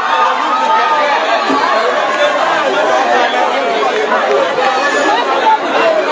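A large crowd of women sings and ululates loudly close by.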